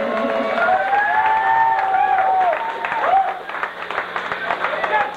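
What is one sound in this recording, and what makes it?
An electric guitar plays a fast lead line with bending notes, loud and distorted.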